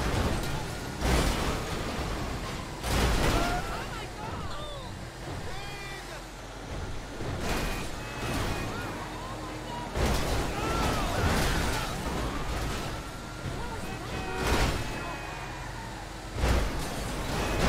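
Cars crash into each other with loud thuds.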